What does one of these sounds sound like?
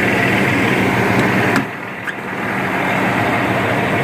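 A truck cab door unlatches and swings open.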